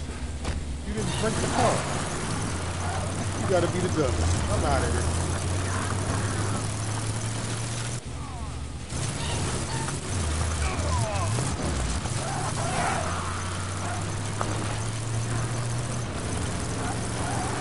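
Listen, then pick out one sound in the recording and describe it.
A car engine hums steadily and revs as the car drives.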